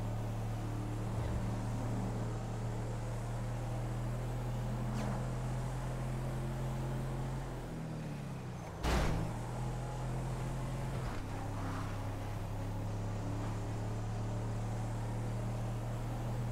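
A car engine hums steadily, its pitch dipping briefly as the car slows.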